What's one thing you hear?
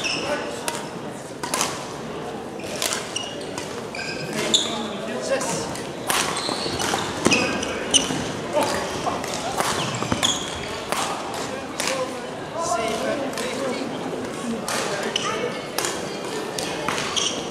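Badminton rackets strike shuttlecocks with sharp pops, many times, in an echoing hall.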